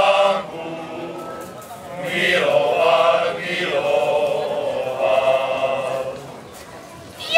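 A choir of older men sings together outdoors.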